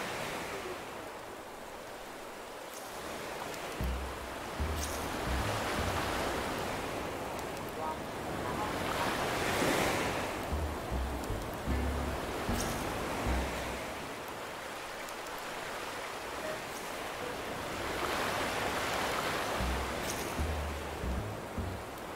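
Gentle waves wash in and out on a beach, swelling and fading.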